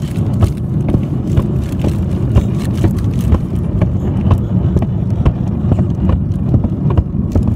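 Rough rustling and knocking sound right against the microphone as a phone is handled.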